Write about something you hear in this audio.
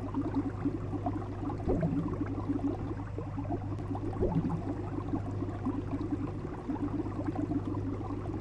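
Water gurgles and bubbles steadily.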